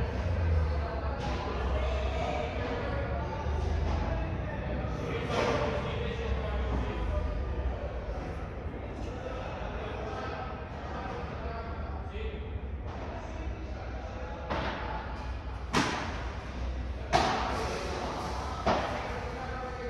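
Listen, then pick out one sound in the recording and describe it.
Padel rackets strike a ball with sharp hollow pops that echo around a large hall.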